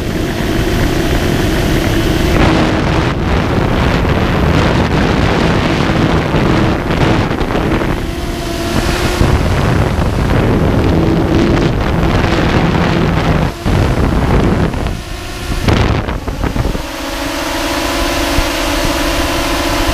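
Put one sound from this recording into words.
A quadcopter's propellers whir and buzz in flight.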